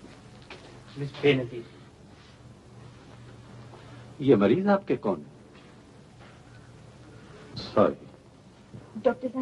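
A middle-aged man speaks in a firm voice, close by.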